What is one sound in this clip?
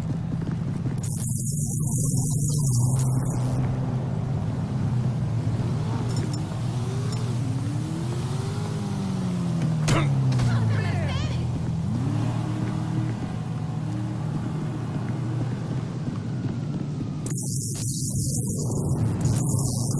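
Metal scrapes and hisses with a spray of sparks.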